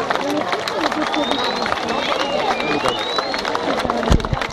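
Fireworks whistle and screech.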